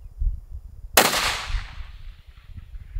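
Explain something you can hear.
A rifle fires a single loud shot close by.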